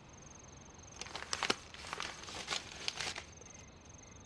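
Paper rustles as it is unfolded.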